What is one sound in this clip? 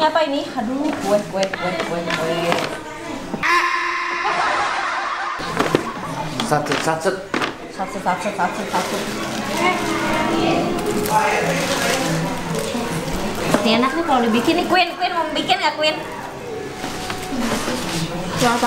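A paper bag rustles as a woman rummages through it.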